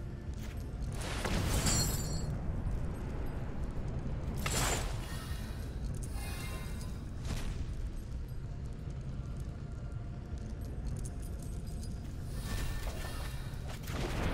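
Magical whooshing and chiming effects sound now and then.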